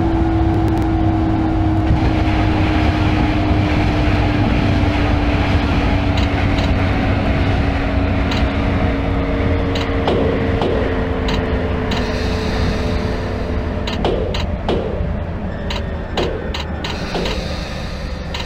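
A train's electric motor whines and slowly falls in pitch as it slows down.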